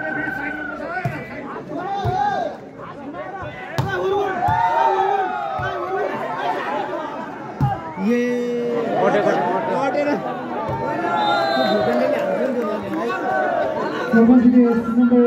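A large outdoor crowd cheers and shouts throughout.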